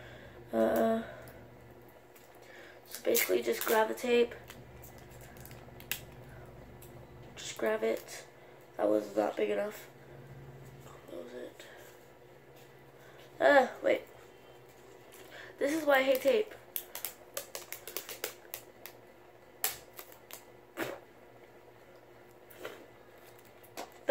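Plastic wrapping crinkles and rustles in someone's hands.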